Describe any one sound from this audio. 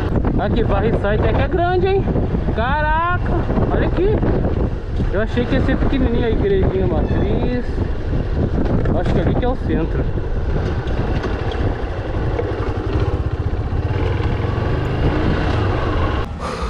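Wind rushes loudly past a helmet microphone.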